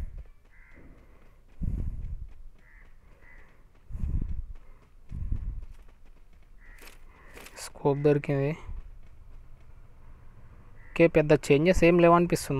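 Footsteps of a running game character patter.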